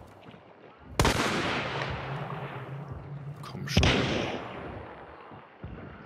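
A gun fires loudly, with booming echoes that slowly fade.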